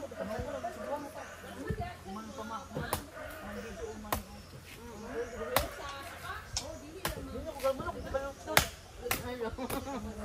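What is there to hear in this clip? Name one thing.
A coconut husk cracks and tears as it is pried apart.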